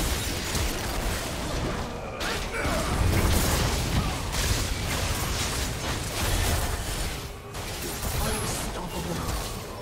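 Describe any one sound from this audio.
Video game spell effects whoosh and crackle in a busy fight.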